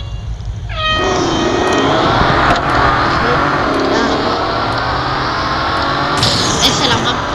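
Racing car engines roar loudly and rev as the cars speed off.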